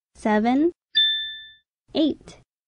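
A bright electronic chime rings once.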